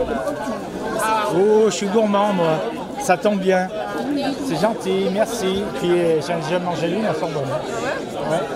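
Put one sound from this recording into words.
A man speaks close by, loud and clear above the chatter.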